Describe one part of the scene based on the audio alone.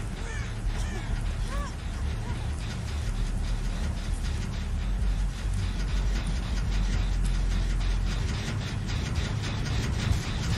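Footsteps run over dry leaves and rustle through tall stalks.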